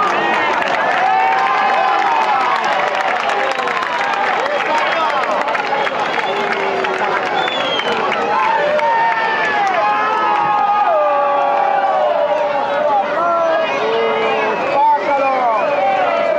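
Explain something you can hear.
A large crowd of spectators shouts and cheers outdoors.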